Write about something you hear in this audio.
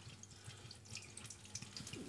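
Liquid pours and splashes into a sink.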